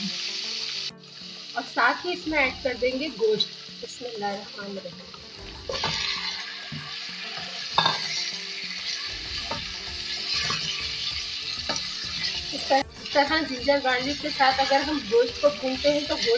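Oil sizzles and bubbles steadily in a pan.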